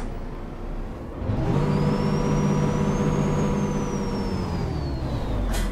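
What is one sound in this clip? A bus engine idles with a low, steady hum.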